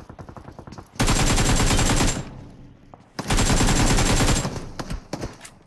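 Loud bursts of gunfire blast from a video game.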